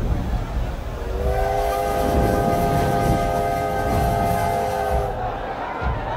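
A steam train whistle blows long and steady.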